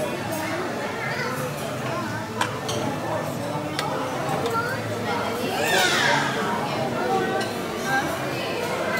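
Many people chatter in the background of a busy room.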